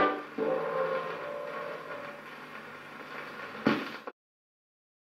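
Music plays from an old record player.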